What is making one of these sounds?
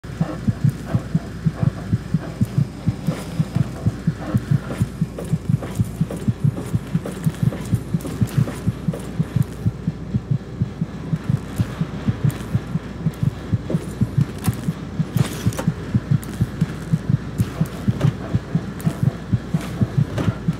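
Footsteps clank steadily on a metal grating.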